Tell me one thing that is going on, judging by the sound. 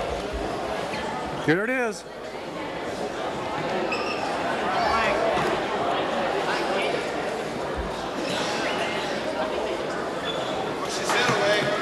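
Bodies scuffle and thump on a padded mat.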